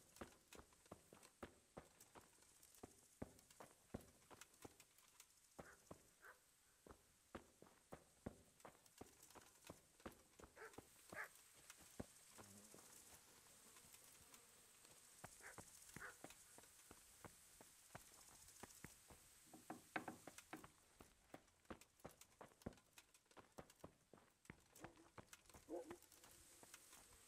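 Footsteps walk across the ground and over stone.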